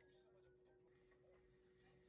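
A metal spoon scrapes against a ceramic dish.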